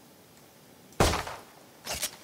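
A pistol fires a single shot.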